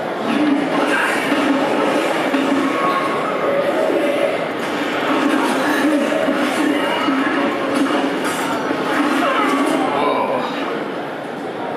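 Fighting sounds from a video game play loudly through a loudspeaker.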